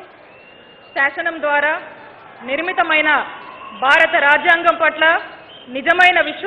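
A woman repeats words slowly through a microphone.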